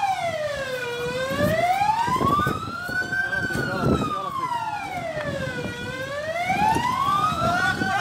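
A crowd of men shouts and calls out in agitation.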